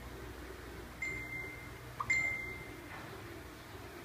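A phone beeps twice.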